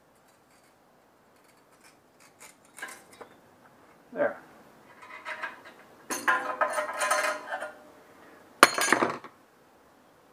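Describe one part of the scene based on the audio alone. A saw blade rattles and clatters as it is handled.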